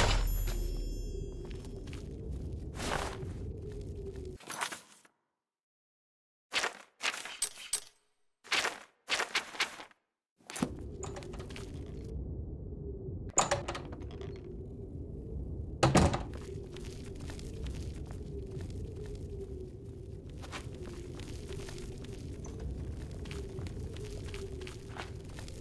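A low, eerie droning hum fills an echoing cave.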